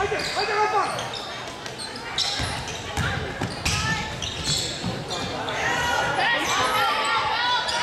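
A crowd in a large echoing gym cheers and shouts.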